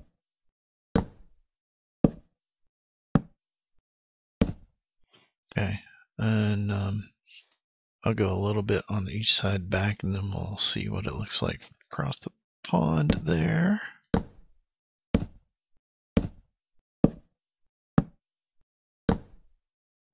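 Wooden blocks knock softly as they are placed one after another.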